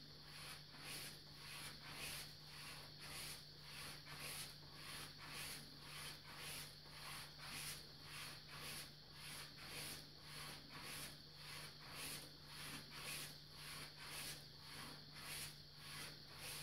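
A blade swishes back and forth along a leather strop in a steady rhythm.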